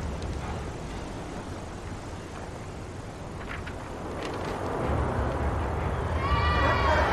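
Water laps softly against a wooden pier.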